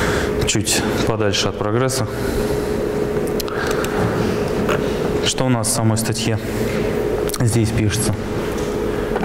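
A young man speaks haltingly into a microphone.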